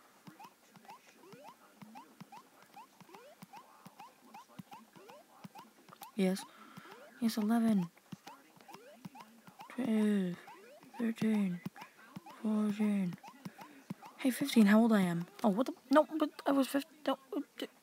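Quick, soft game blips repeat steadily.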